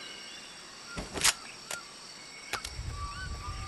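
A gun clicks sharply as it is readied.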